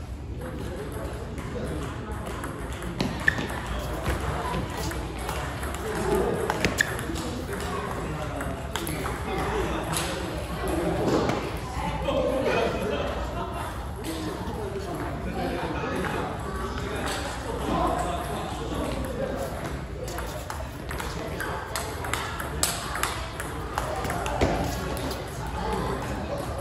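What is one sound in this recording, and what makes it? A table tennis ball clicks back and forth between paddles and the table.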